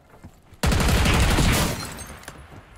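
Gunfire rattles loudly in a short burst.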